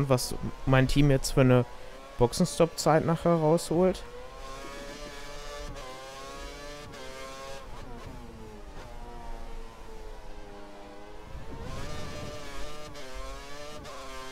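A racing car engine whines at high pitch, rising and falling as the car shifts gears and brakes.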